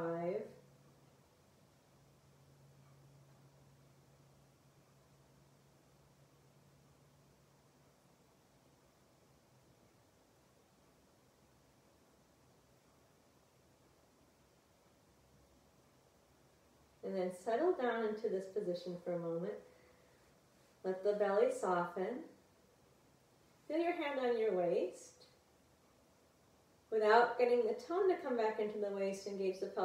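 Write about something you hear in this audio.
A woman speaks calmly and softly, close to a microphone, with long pauses.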